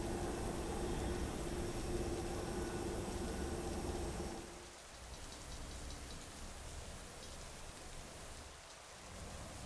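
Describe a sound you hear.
Oil trickles into a glass jar.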